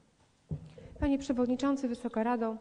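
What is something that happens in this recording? A woman speaks into a microphone in a large echoing hall.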